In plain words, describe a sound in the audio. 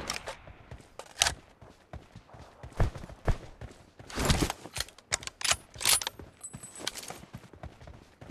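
Footsteps thud quickly on grassy ground.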